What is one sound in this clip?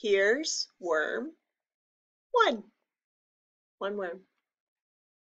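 A woman reads aloud with animation, close to a microphone, in short phrases with pauses.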